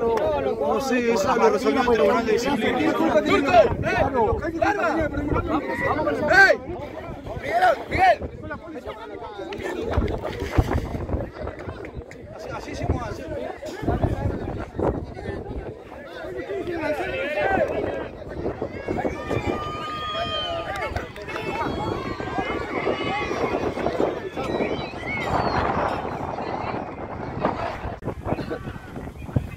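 Men argue loudly and angrily close by, outdoors.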